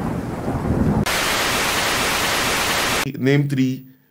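Television static hisses.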